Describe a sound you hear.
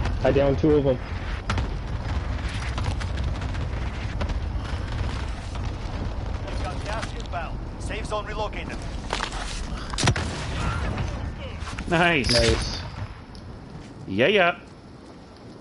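A man talks with animation into a headset microphone, close up.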